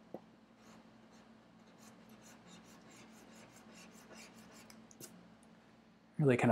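Charcoal scratches and rubs softly on paper.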